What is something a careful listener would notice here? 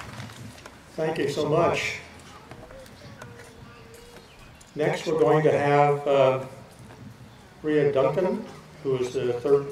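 A man speaks calmly and clearly through a microphone and loudspeaker, pausing between phrases.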